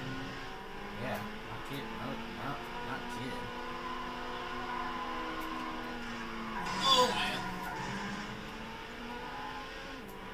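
A racing car engine roars steadily, its pitch rising and falling with the gears.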